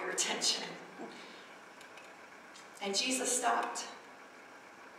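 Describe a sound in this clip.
A woman speaks into a microphone in short bursts, heard over loudspeakers in a large room.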